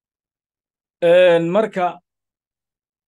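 An elderly man chants briefly into a microphone in a drawn-out, melodic voice.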